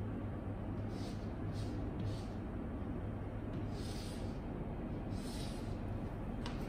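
Chalk scratches and taps on a board in short strokes.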